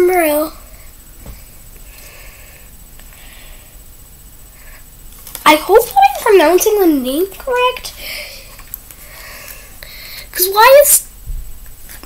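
A young girl talks close to the microphone in a lively, sing-song voice.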